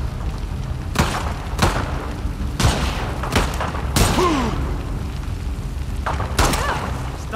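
Gunshots ring out one after another.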